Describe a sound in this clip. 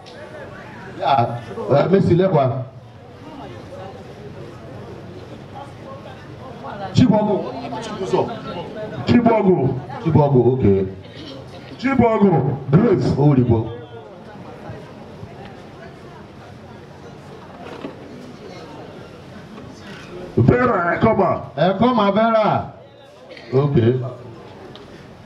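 A man speaks loudly to a crowd outdoors, in bursts with pauses.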